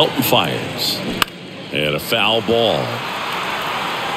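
A bat cracks sharply against a ball.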